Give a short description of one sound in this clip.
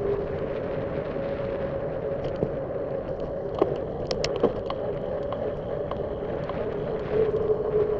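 A bicycle rattles and clicks as it rolls over the road.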